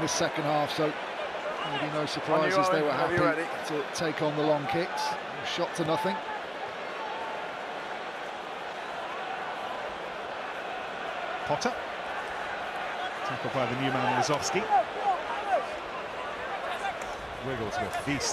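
A large crowd murmurs and cheers in a big open stadium.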